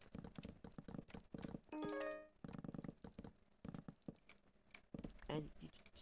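Blocks break with quick soft crunching thuds.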